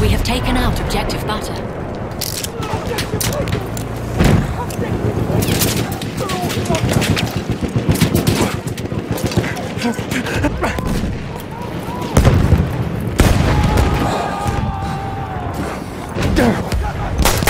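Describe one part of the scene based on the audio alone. Explosions rumble and boom.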